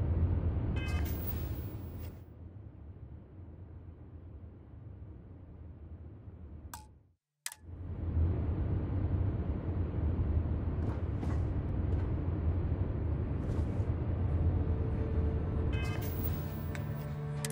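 A menu gives short electronic beeps.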